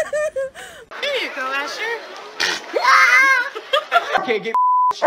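A small child laughs nearby.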